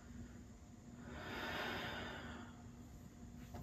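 A man breathes out slowly and deeply.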